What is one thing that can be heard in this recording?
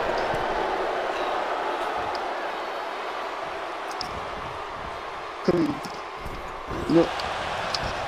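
A large crowd murmurs and cheers steadily in a big echoing arena.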